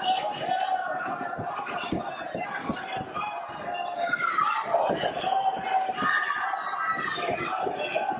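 A kick and punches thud against a fighter's body.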